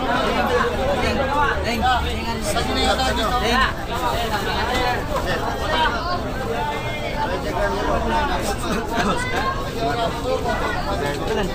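Many men and women chatter all around in a busy crowd.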